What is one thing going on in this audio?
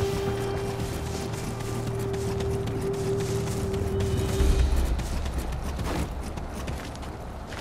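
Footsteps run quickly through dry grass and over the ground.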